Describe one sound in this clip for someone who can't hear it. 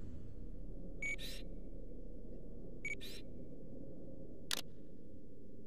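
A game menu gives short electronic chimes as the cursor moves.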